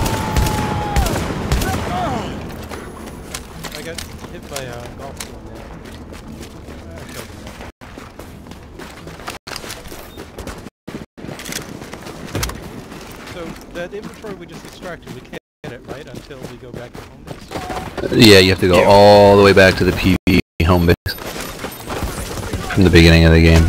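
Footsteps crunch on snow and clang on metal stairs.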